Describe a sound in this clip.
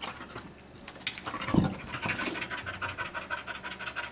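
A dog drops heavily onto the floor with a thump.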